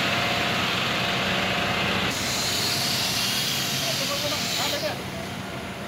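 A high-pressure hose nozzle hisses, spraying disinfectant mist.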